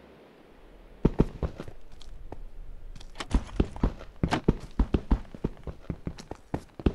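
A pickaxe chips repeatedly at stone with quick, sharp knocks.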